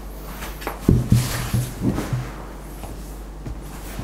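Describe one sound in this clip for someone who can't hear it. A mug is set down on a table with a light knock.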